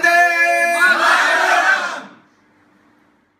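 A crowd of men and women cheers at the end of a song.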